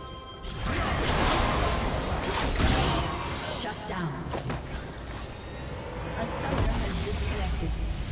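Game spells and attacks crash and whoosh in rapid bursts.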